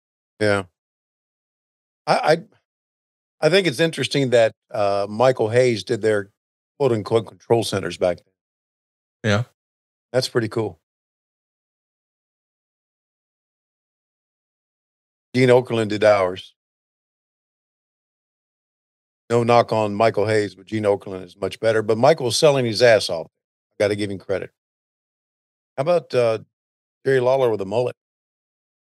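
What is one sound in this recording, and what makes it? A man talks in short bursts with pauses, close to a microphone.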